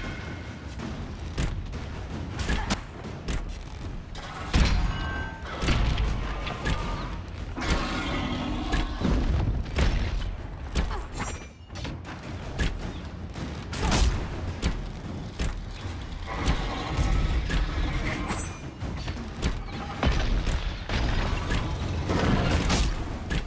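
A dragon roars loudly.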